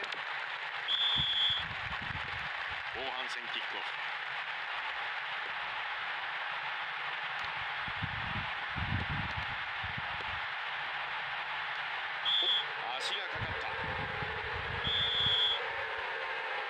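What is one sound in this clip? A referee's whistle blows in short, sharp blasts.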